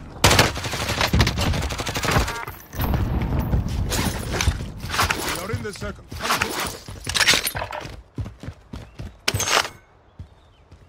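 Gunshots fire rapidly in loud bursts.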